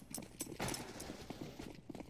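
Footsteps run quickly on hard ground.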